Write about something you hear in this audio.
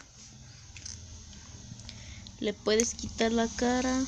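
Plastic toy figures click and rattle as a hand handles them.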